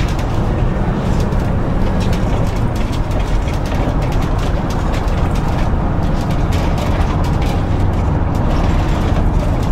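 A bus engine hums steadily as the bus drives along.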